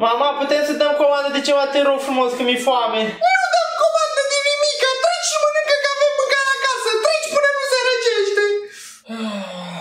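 A young man moans and groans loudly in a drawn-out, pained voice.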